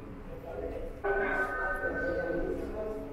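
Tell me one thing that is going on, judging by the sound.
An elderly man talks calmly through a loudspeaker.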